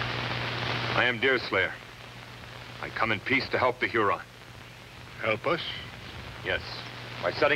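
A man speaks firmly and loudly nearby, with pauses.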